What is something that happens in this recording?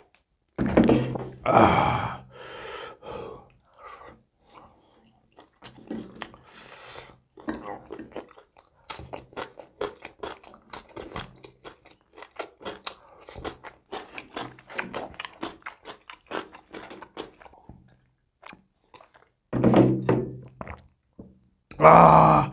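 A man chews and smacks food loudly up close.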